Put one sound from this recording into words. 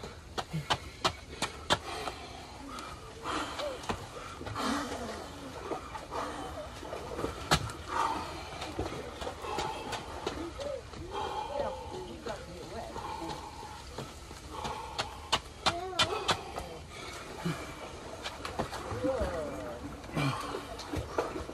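Push-up handles knock on concrete.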